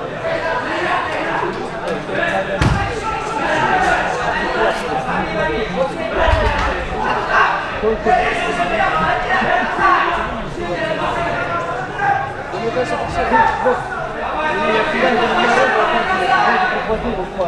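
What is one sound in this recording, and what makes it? A large crowd of young people chatters loudly in an echoing hall.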